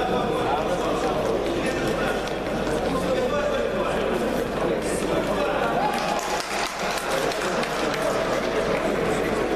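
A crowd of people talk and shout in a large echoing hall.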